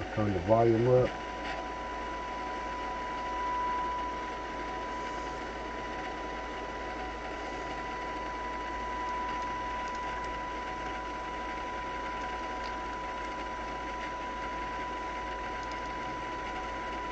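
A steady high tone hums from test equipment.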